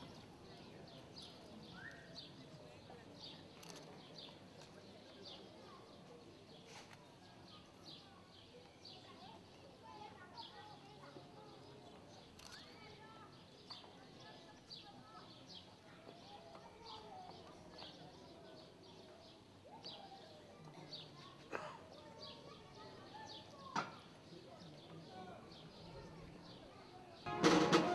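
A crowd murmurs softly outdoors.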